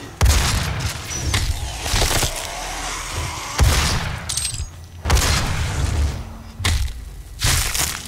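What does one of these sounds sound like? A monster growls and snarls.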